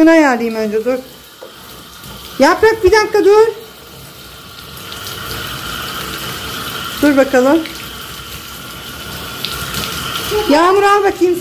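Water sprays from a shower head and splashes.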